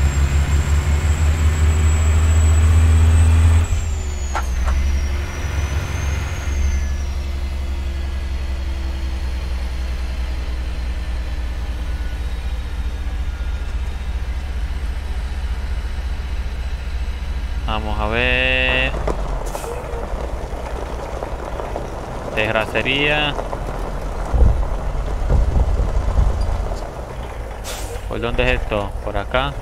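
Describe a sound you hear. A diesel semi truck engine rumbles as the truck cruises.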